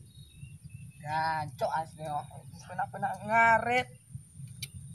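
A young man talks from a short distance.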